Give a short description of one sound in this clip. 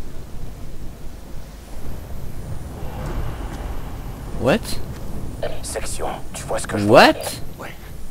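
Rain patters steadily on leaves and undergrowth.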